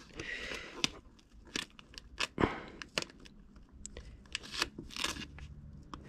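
Plastic trim clicks and taps under gloved fingers.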